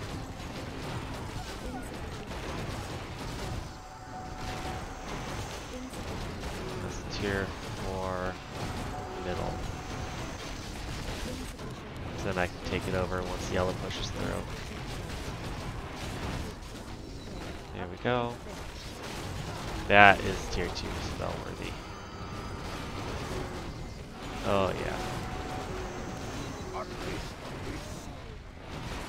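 Game battle sounds of swords clashing and spells firing go on throughout.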